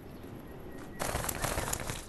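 Small feet rustle quickly through grass.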